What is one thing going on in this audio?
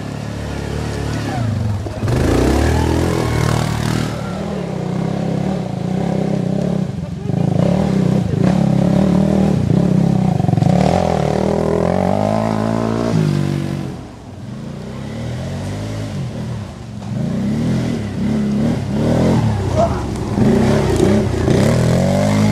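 Quad bike engines rev and roar throughout, rising and falling in pitch.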